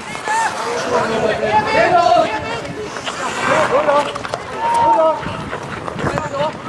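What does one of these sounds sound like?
Men shout to each other across an open ice rink.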